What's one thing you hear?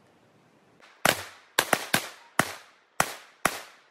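A pistol fires several quick shots that echo outdoors.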